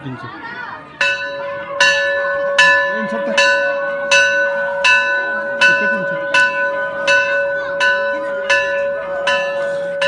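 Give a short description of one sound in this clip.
A metal bell rings with loud, regular strikes that ring on.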